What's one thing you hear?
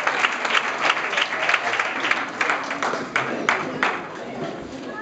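An audience claps its hands.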